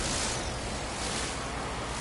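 A mining laser beam buzzes against rock.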